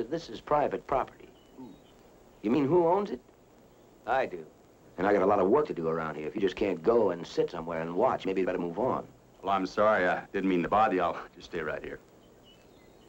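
A young man speaks calmly and firmly up close.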